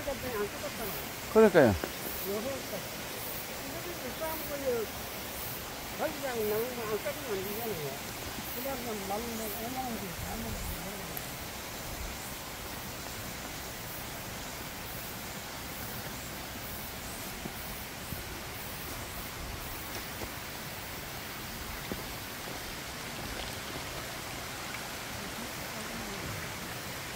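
Footsteps rustle through undergrowth on a path.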